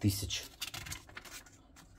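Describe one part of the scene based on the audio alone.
A magazine page rustles as it is turned.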